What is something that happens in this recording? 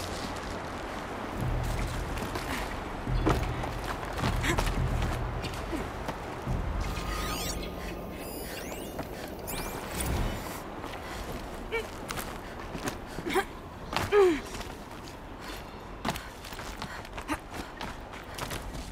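Footsteps crunch over rubble and snow.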